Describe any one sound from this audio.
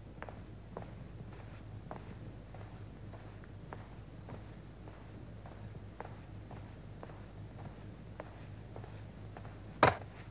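Footsteps walk steadily along a hard floor.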